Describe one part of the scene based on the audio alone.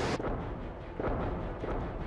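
Missiles roar through the air.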